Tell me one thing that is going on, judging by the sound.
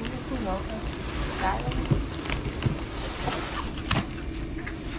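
A cardboard box scrapes and thumps as it is set down.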